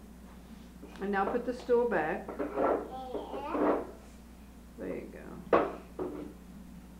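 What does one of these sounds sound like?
A toddler babbles and chatters close by.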